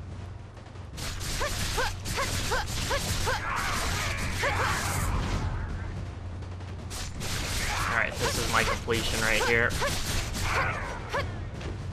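Blades whoosh and strike in a fast fight.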